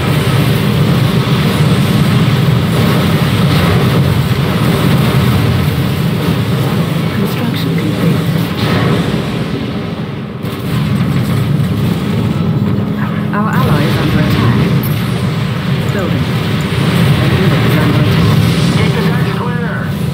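Laser beams hum and crackle as they fire.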